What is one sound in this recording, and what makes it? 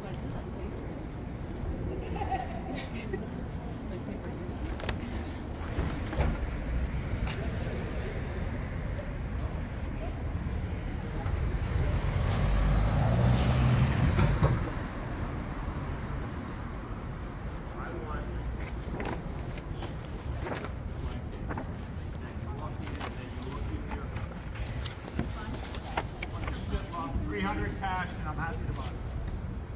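Traffic rumbles steadily along a city street outdoors.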